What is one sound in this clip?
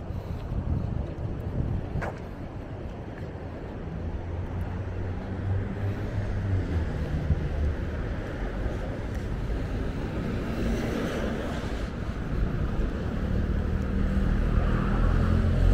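Road traffic rumbles outdoors.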